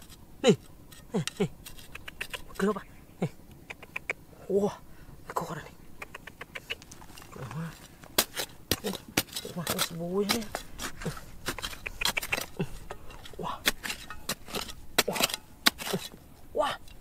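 A small trowel scrapes and digs into dry, stony soil.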